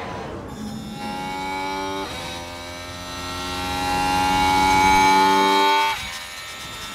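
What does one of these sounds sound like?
A race car engine whines, rising steadily in pitch, then cuts off.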